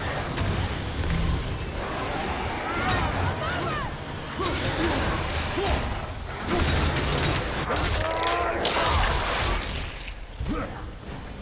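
Weapons clash and strike with heavy impacts.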